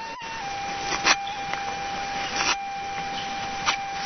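A knife scrapes and whittles bamboo.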